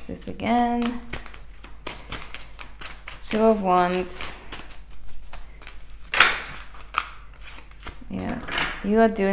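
Playing cards are shuffled by hand, with quick soft flicks and slaps.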